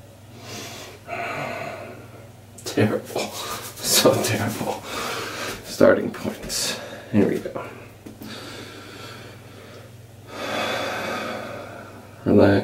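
A young man talks quietly close by.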